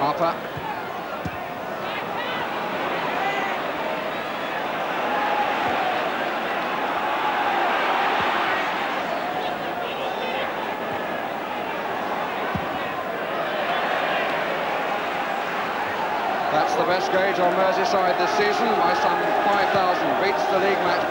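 A large football crowd roars and murmurs across an open stadium.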